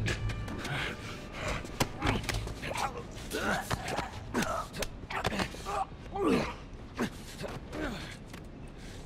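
A man chokes and gasps in a struggle.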